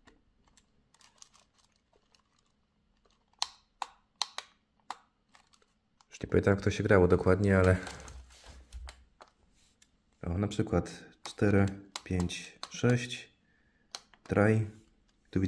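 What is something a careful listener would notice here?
Buttons on a handheld electronic game click softly as they are pressed.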